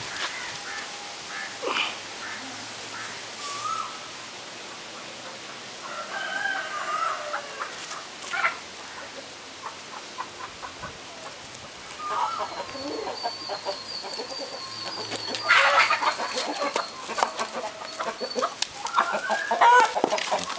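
A dog's paws scuffle on grass and dirt.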